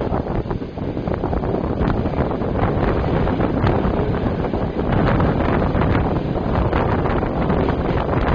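A train's rumble grows louder and echoes inside a tunnel.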